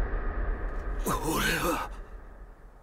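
A young man speaks in a shaky, frightened voice.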